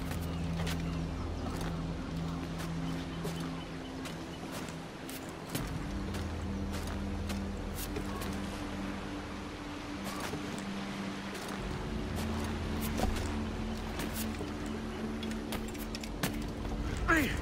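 Hands grip and knock against wood as someone climbs quickly.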